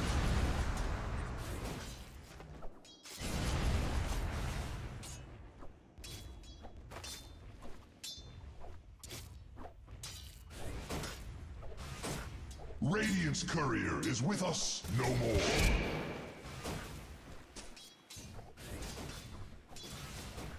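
Clashing fight sounds and magic blasts crackle and boom in a battle.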